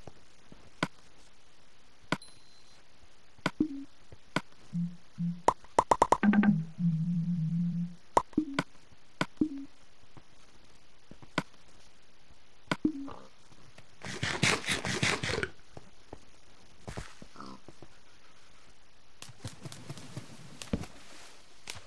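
Soft clicks sound now and then.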